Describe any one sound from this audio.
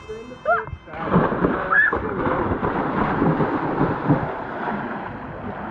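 Water churns and bubbles, heard from underwater.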